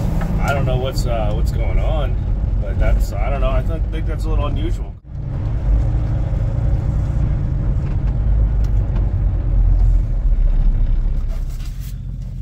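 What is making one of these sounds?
A truck engine rumbles low and steady while driving.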